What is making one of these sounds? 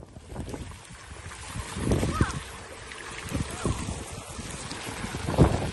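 Water from a fountain splashes steadily into a pool.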